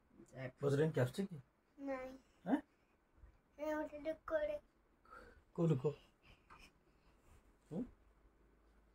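A young child talks close by.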